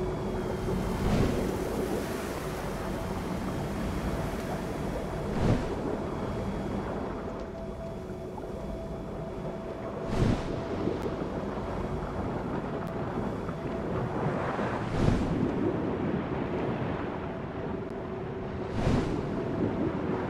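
Water swooshes in short bursts as a diver swims forward.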